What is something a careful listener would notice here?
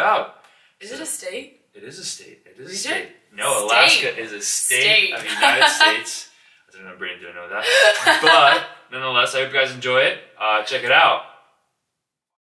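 A young woman laughs loudly, close by.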